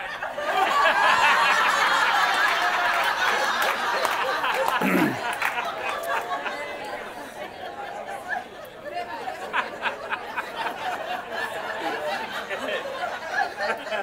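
A man speaks with animation through a microphone to an audience.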